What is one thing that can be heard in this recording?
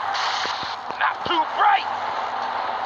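A bicycle crashes to the ground with a clatter.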